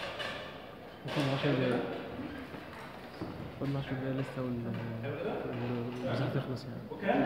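A young man talks calmly, explaining, in a room with some echo.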